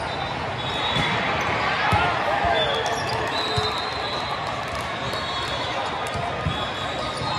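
A volleyball thumps off hands.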